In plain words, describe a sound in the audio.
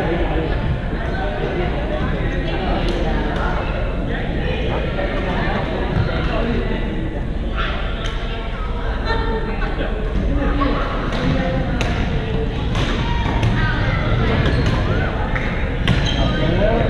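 Rackets hit a shuttlecock with sharp pops in a large echoing hall.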